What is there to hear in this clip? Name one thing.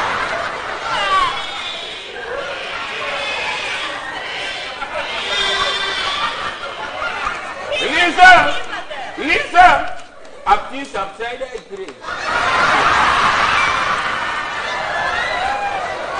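A man and women speak loudly and with animation on a stage.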